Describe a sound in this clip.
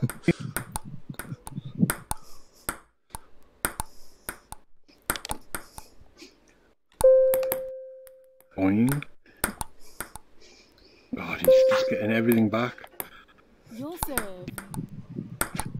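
A ping-pong ball clicks sharply against paddles and a table in a quick rally.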